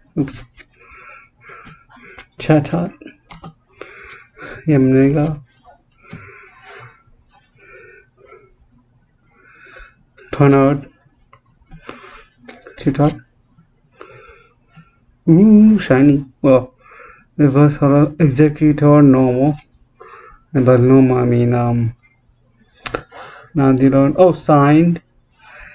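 A man talks calmly and close by, pausing often.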